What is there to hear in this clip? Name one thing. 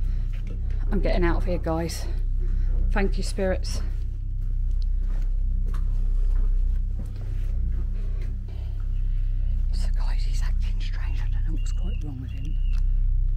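A middle-aged woman talks quietly, close by.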